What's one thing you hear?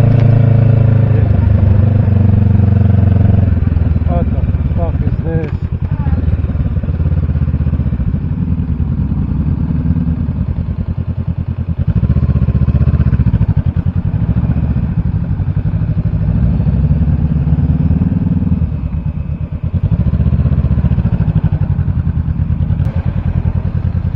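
A motorcycle engine rumbles close by, rising and falling with the throttle.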